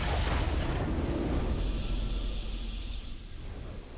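A triumphant fanfare plays.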